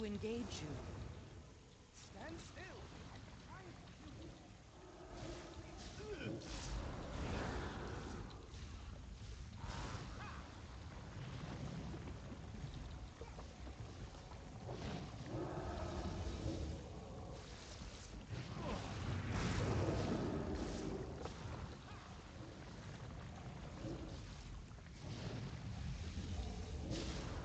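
Fiery spell blasts crackle and roar in a fast-paced battle.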